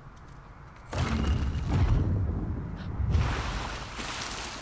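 A heavy stone mechanism rumbles and grinds.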